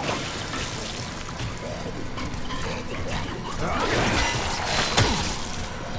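A weapon sprays out a roaring, hissing stream in bursts.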